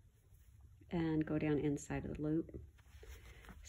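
Thread rasps softly as it is pulled through cloth.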